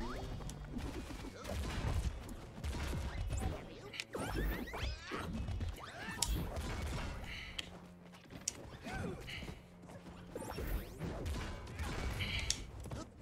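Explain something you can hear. Game fighting sound effects play with quick hits and whooshes.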